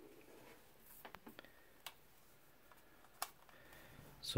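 A plastic adapter knocks lightly as it is handled.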